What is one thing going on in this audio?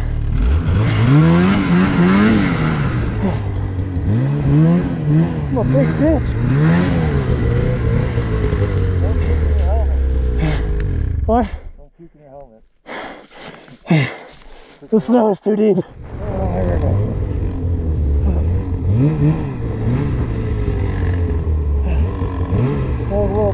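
A snowmobile engine revs and whines up and down close by.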